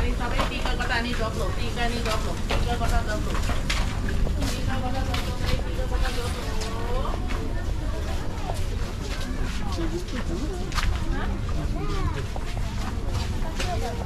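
Footsteps scuff on wet pavement.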